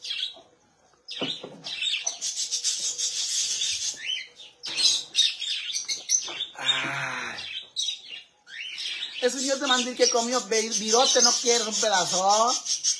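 Caged birds chirp and twitter nearby.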